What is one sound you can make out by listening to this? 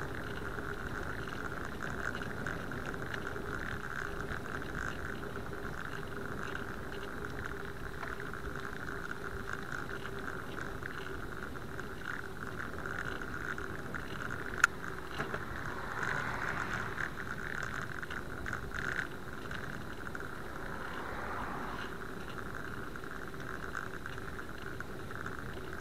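A bicycle rattles and whirs over the road.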